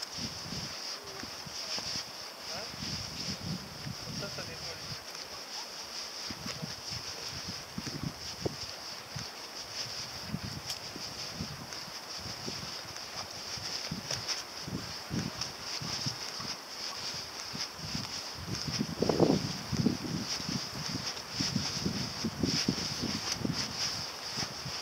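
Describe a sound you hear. Footsteps crunch on a sandy path.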